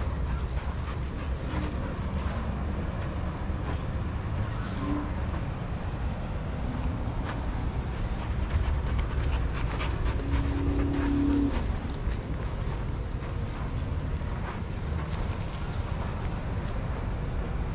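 Dogs' paws pad and scuff on sand.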